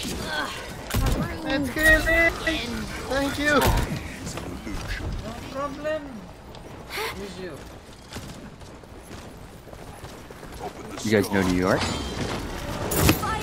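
Bolts fire with sharp, sudden bursts and blasts.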